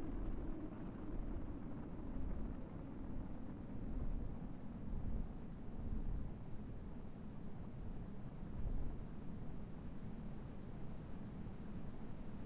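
Jet engines roar steadily with a low, rumbling drone.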